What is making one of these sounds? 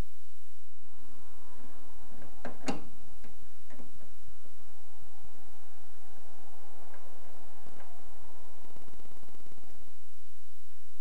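A screwdriver scrapes against a metal screw as it turns.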